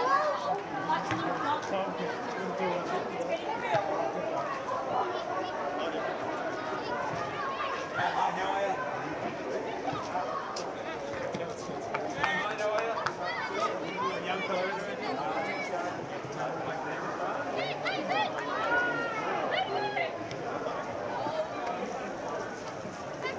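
Spectators cheer and call out from the sideline.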